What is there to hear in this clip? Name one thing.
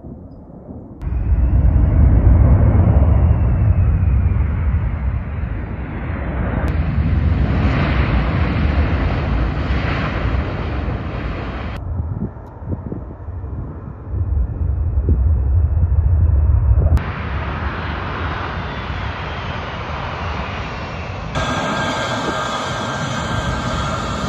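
A large jet plane roars loudly as it lands and races along a dirt runway.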